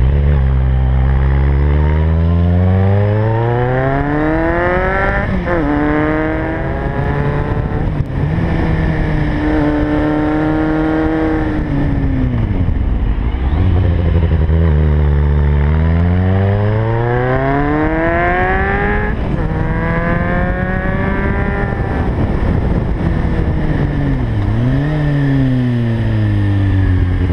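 A motorcycle engine revs up and down through the gears.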